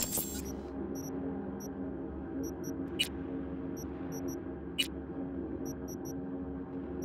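Soft electronic clicks sound at uneven intervals.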